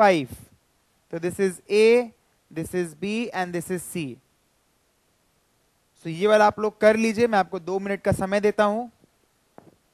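A young man speaks calmly into a close microphone, explaining.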